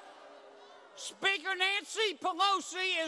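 An older man speaks loudly and emphatically into a microphone over loudspeakers.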